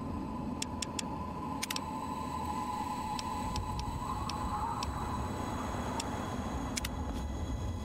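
Short electronic clicks sound as menu choices change.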